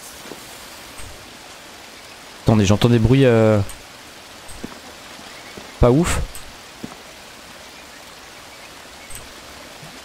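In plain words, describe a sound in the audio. Footsteps rustle softly through leafy undergrowth.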